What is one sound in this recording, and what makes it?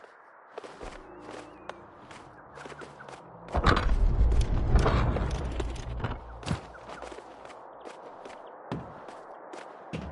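Light footsteps patter quickly along.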